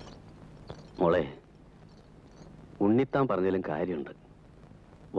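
An elderly man speaks firmly, close by.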